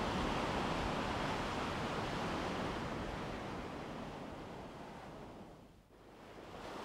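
Ocean waves wash and swirl steadily, then fade away.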